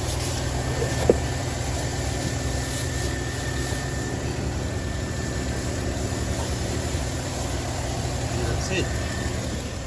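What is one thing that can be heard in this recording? A cloth rubs and wipes across a plastic cover.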